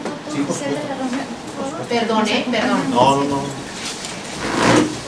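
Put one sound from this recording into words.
A woman speaks to a group.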